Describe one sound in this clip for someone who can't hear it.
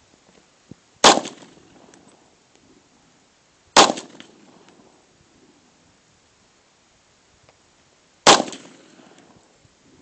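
A .40 caliber pistol fires single shots outdoors, each crack echoing off distant hills.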